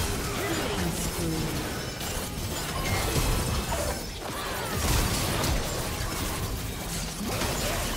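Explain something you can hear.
Magic blasts and weapon hits crash and whoosh during a hectic battle.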